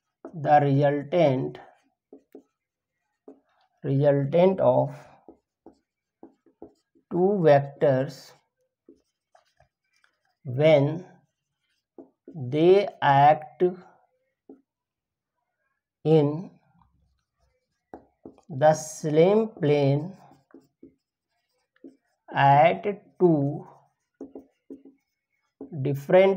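A man speaks calmly and slowly, in short phrases, close by.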